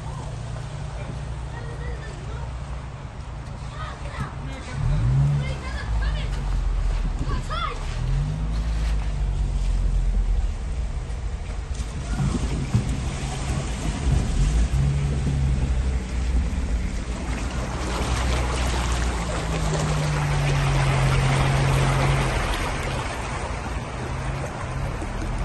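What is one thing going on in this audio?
A car engine hums steadily up close.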